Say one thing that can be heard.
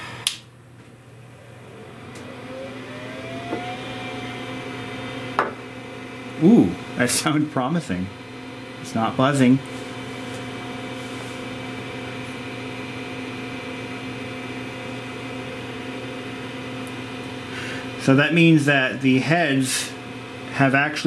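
An old computer hums steadily with a faint high whine.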